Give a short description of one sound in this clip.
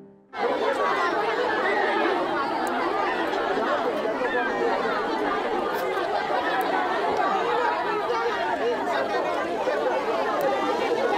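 A large crowd of women and children chatters all around outdoors.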